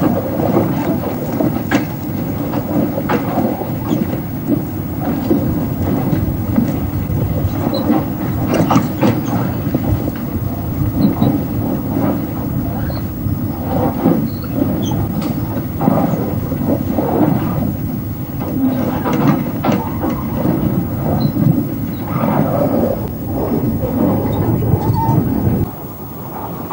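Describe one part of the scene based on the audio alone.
A heavy track machine rumbles and roars steadily outdoors.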